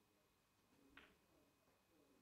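Snooker balls knock together with a click.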